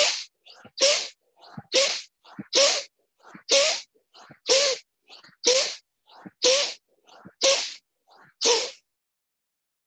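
A man breathes out forcefully in quick, steady bursts, heard through an online call.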